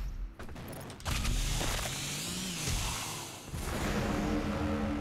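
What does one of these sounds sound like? A demon roars and is torn apart with wet, crunching thuds.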